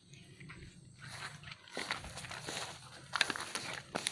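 A fishing reel rattles and clicks close by.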